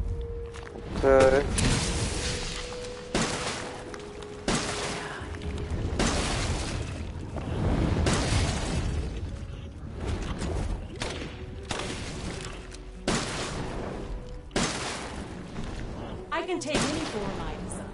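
A monster lets out shrill screeches.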